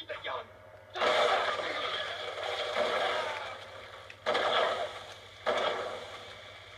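Loud gunshots boom through a television speaker.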